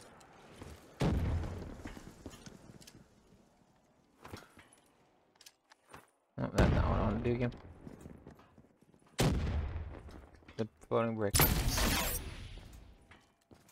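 A heavy energy gun fires loud booming blasts.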